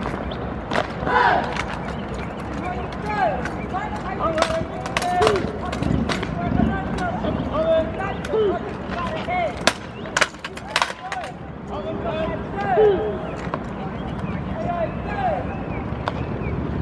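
A young man shouts drill commands outdoors.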